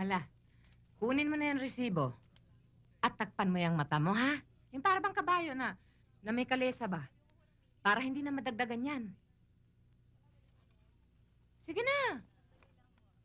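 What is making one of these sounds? Another young woman answers calmly nearby.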